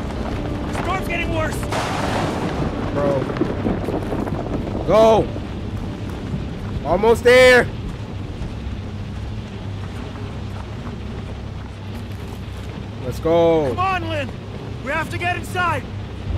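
A young man exclaims and talks loudly into a close microphone.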